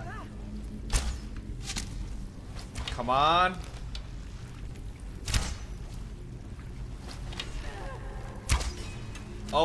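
A bowstring snaps as an arrow is loosed, several times.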